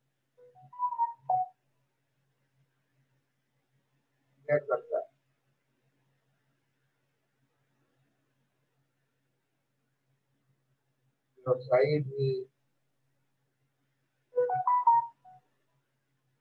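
An elderly man speaks calmly in short phrases over a microphone, with pauses between.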